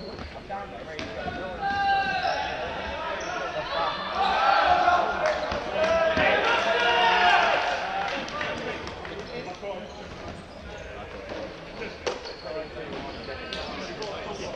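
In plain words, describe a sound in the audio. A ball is struck with sharp knocks.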